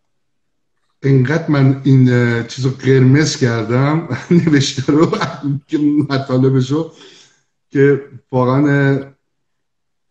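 An older man speaks over an online call.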